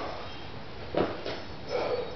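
A barbell clanks against a metal rack.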